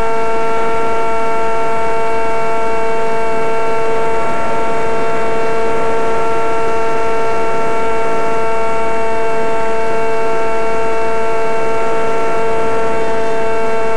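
Wind rushes loudly past the aircraft.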